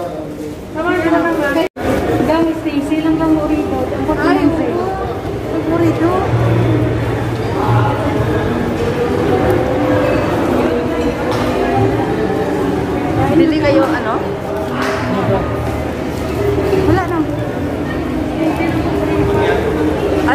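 A middle-aged woman talks with animation close to a handheld microphone.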